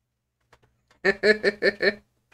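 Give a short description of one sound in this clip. A man laughs briefly close to a microphone.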